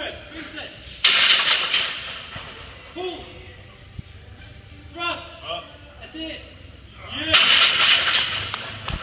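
Heavy barbell plates clank and rattle.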